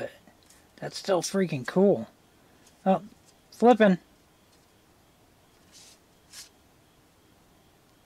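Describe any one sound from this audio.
Stiff cards rustle and slide against each other in someone's hands.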